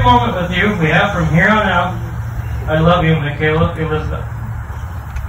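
A man speaks through a microphone outdoors.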